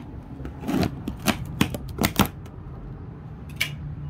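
A blade scrapes and tears through packing tape on a box.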